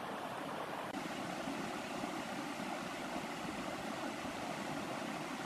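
A river rushes steadily over rocks.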